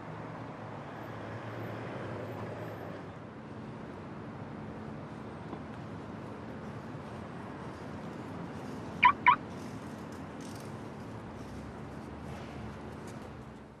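Footsteps tap on a pavement outdoors.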